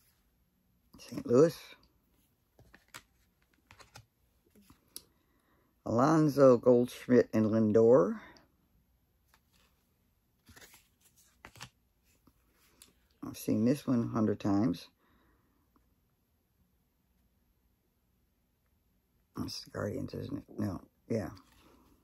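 An elderly man speaks calmly, close to a microphone, in short bursts with pauses.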